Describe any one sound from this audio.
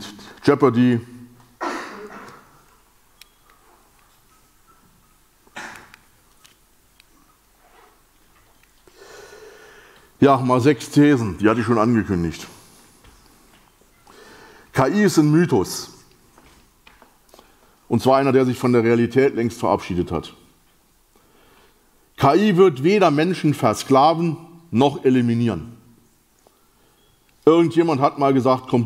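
A middle-aged man speaks with animation through a microphone, in bursts with pauses.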